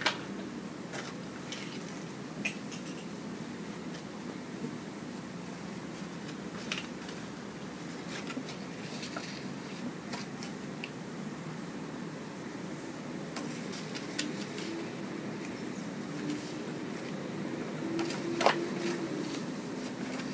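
Paper rustles and crinkles as hands handle it.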